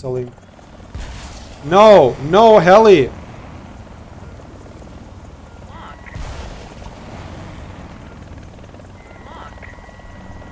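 A helicopter's rotor whirs and thumps steadily.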